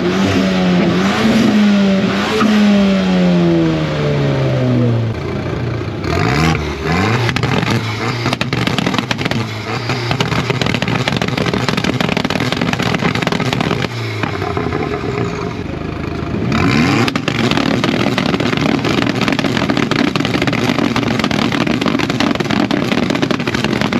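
A car engine idles roughly and loudly.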